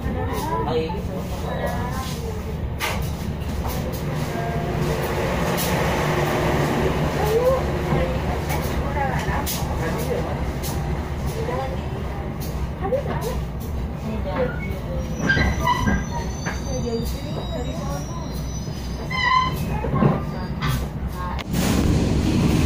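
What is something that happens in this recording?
A train rolls slowly past close by with a low rumble and clatter.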